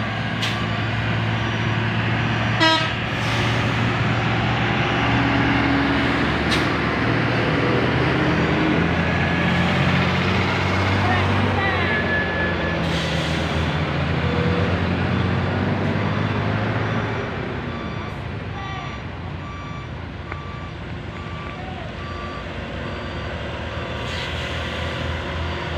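Heavy truck engines rumble loudly close by, then quieten.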